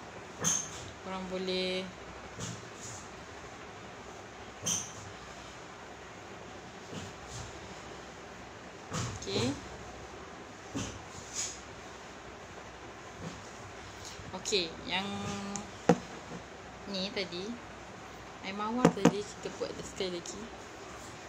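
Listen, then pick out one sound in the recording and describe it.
A young woman speaks quietly and casually, close by, in short bursts.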